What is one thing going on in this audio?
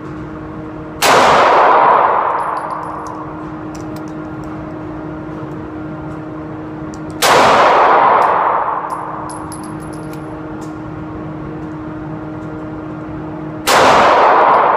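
A handheld power tool grinds against metal in short, loud bursts that trail off.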